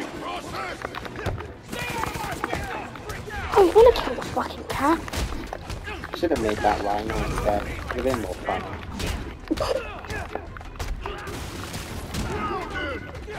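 Punches and kicks land with heavy thuds in a fast brawl.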